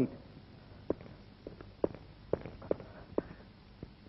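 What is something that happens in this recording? A person's footsteps scuff on concrete.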